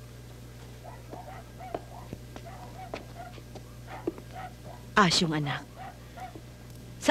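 A woman speaks softly and pleadingly nearby.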